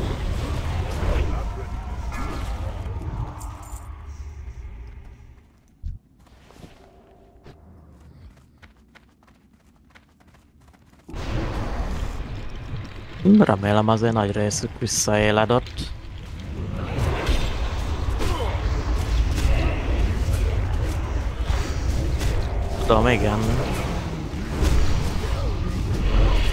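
Weapons and spells clash loudly in a fantasy battle.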